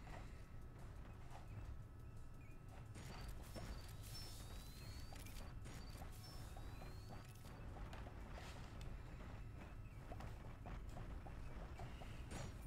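A game's blaster fires rapid zapping shots.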